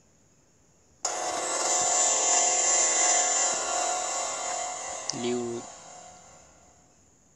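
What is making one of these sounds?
A bright game jingle plays and slowly fades.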